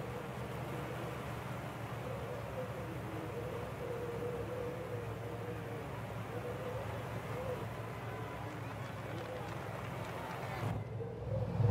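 A car engine hums steadily ahead.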